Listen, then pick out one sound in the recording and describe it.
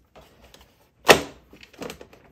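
A plastic latch snaps with a sharp click.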